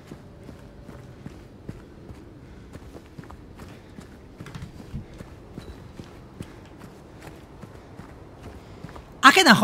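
Footsteps walk steadily on hard ground.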